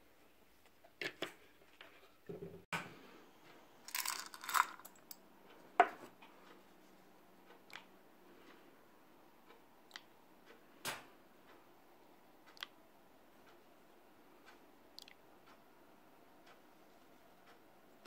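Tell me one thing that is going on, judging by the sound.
Small plastic parts click and clatter as hands handle them.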